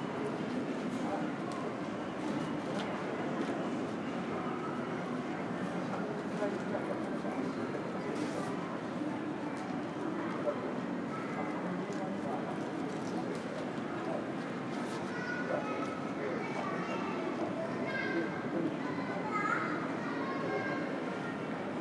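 A steady low hum fills a large echoing hall.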